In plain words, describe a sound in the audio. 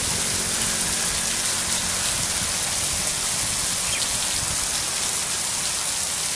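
Water sprays and hisses steadily from sprinklers.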